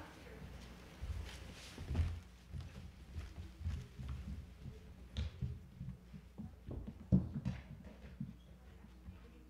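Children's feet thump and shuffle on hollow boards.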